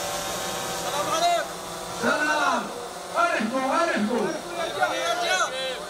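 A group of men chant loudly together.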